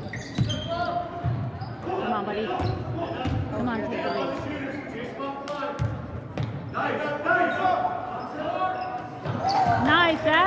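Spectators shout and call out in an echoing gym.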